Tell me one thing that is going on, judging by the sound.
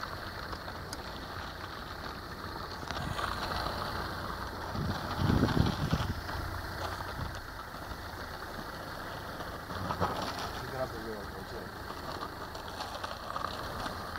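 Skateboard wheels roll and rumble on asphalt.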